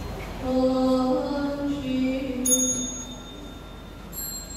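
A man chants slowly in a deep, steady voice in a reverberant hall.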